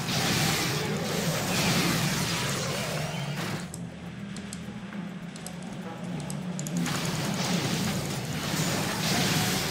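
Monsters screech and strike in a noisy fight with magic whooshes.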